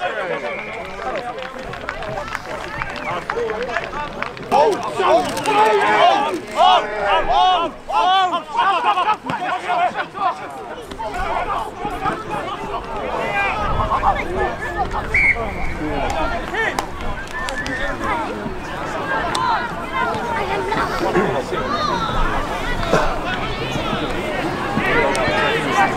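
Rugby players shout and call out loudly on an open field.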